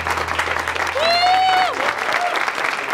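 A young woman cheers and whoops.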